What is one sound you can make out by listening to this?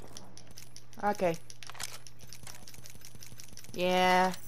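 A game's menu beeps and chimes as items are picked.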